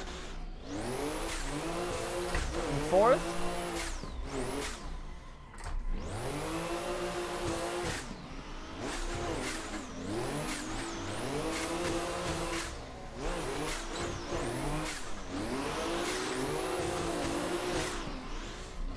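Tyres screech while sliding sideways.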